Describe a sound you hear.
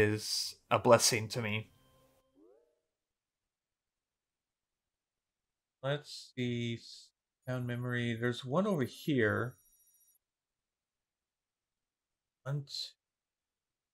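A young man talks casually and with animation, close to a microphone.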